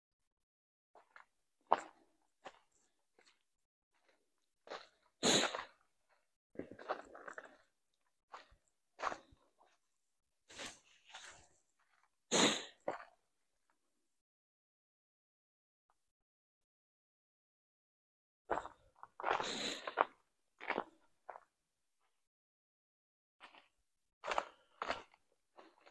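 Footsteps crunch on dry leaves and snow.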